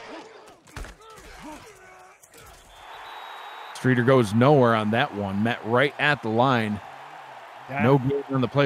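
A crowd cheers and murmurs in a large stadium.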